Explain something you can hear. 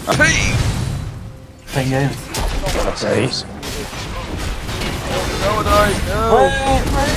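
Magic spells burst and weapons clash in a fantasy battle.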